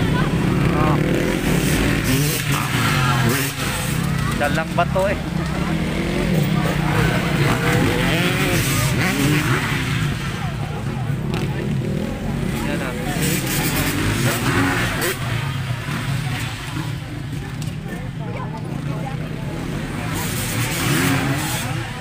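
Dirt bike engines rev and whine.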